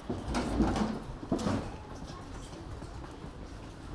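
Footsteps tap on a wet pavement outdoors.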